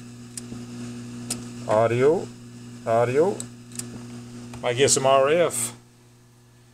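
A computer fan hums steadily close by.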